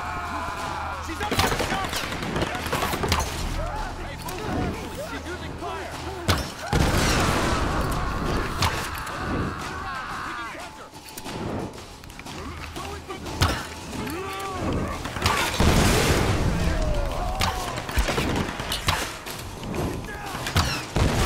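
A bowstring twangs as arrows are loosed.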